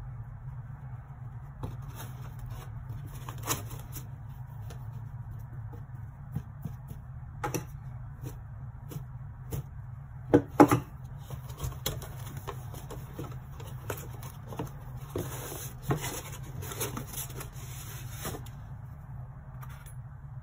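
Hands handle and rustle objects in a cardboard box, with soft knocks and clicks.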